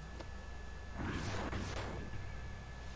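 A burst of electric magic crackles and whooshes.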